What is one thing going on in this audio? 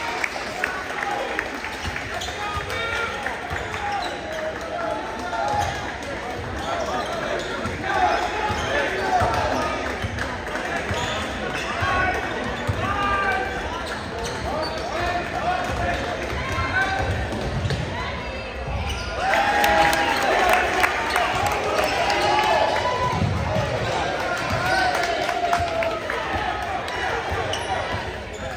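A crowd of spectators murmurs and calls out nearby.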